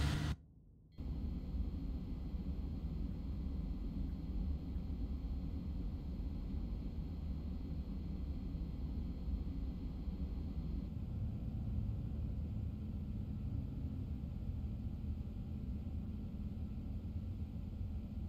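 A low, steady rumble fills the inside of a moving train.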